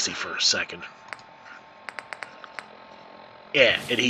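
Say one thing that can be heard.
Soft electronic ticks sound quickly as a menu list scrolls.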